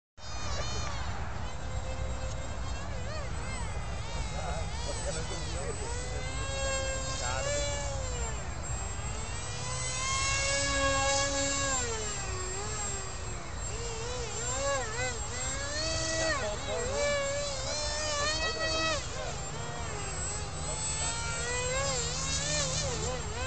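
A model jet's engine whines overhead, its pitch rising and falling as it flies past.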